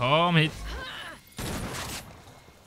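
An energy blast explodes with a loud burst.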